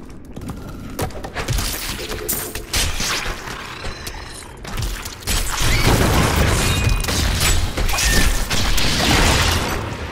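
Magic blasts crackle and roar loudly during a fight.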